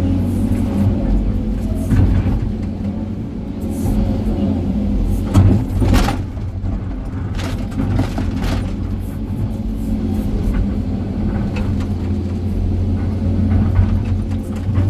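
An excavator bucket scrapes and knocks against rocks and dirt.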